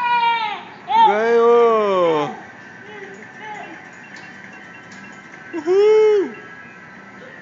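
A young child squeals and shouts excitedly nearby.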